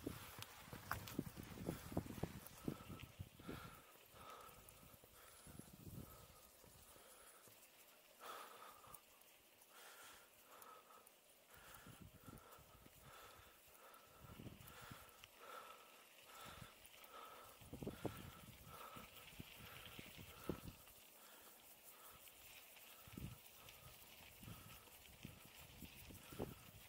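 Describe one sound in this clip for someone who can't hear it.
Mountain bike tyres roll over a dirt track.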